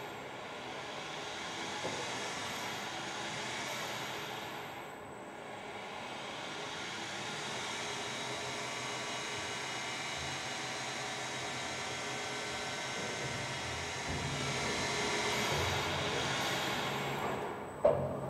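A crane's hoist whirs as it lowers a load.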